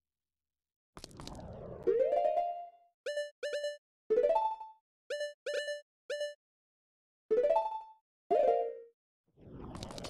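Short electronic blips sound as a menu cursor moves.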